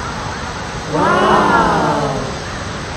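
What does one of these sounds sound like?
A child squeals excitedly.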